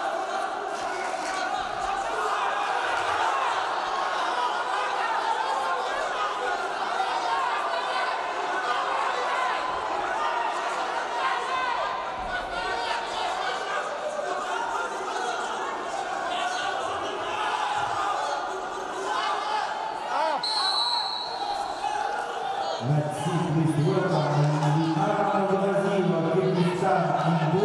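A crowd chatters and murmurs throughout a large echoing hall.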